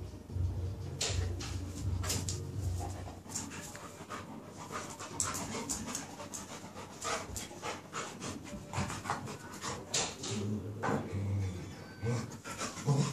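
Two dogs scuffle and play-fight on a hard floor.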